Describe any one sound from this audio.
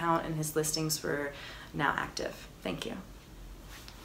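A young woman speaks calmly and clearly into a close microphone.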